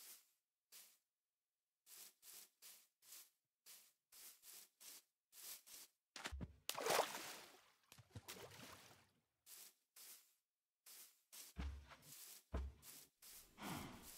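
Footsteps crunch steadily over grass.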